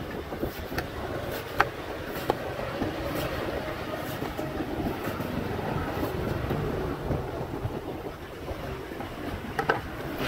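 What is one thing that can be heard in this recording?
A knife slices and shaves the husk of a coconut.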